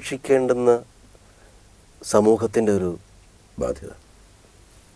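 A middle-aged man speaks calmly and close, in short phrases.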